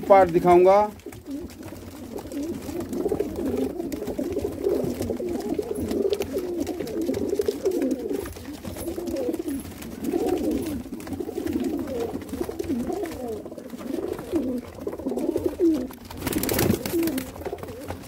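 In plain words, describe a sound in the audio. Many pigeons coo in low, warbling murmurs.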